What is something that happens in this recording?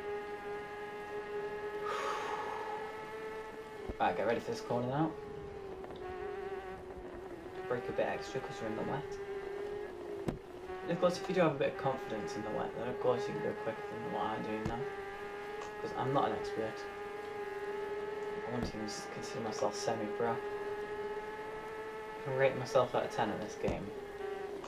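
A motorbike engine drones steadily, its pitch rising and falling slightly.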